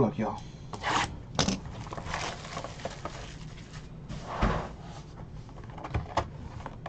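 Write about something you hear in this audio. Cardboard packaging rustles and scrapes in hands.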